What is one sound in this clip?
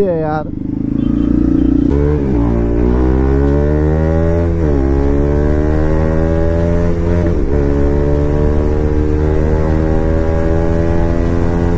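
A motorcycle engine revs hard, rising in pitch and dropping briefly at each gear change.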